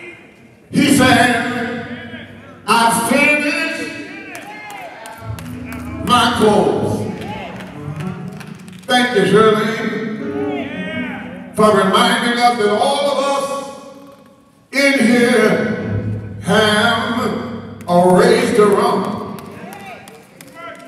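A man preaches forcefully into a microphone in short, loud bursts that echo through a large hall.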